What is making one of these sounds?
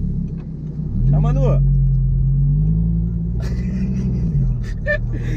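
A car engine revs up loudly and settles again.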